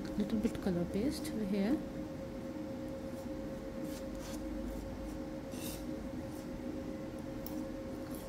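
A metal spatula scrapes and smears soft clay on a hard surface.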